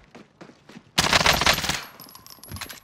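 Rapid gunfire rings out in a loud burst.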